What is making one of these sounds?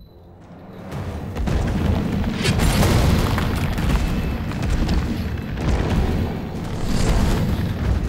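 A monster growls and roars loudly.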